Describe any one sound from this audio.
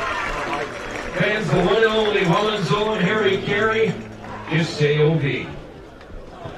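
A middle-aged man sings loudly into a microphone.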